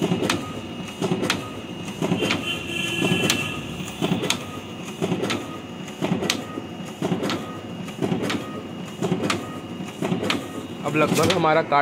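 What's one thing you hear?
A printing machine clatters rhythmically as sheets feed out.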